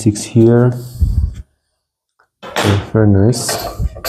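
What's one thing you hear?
A metal ruler clacks down onto a wooden board.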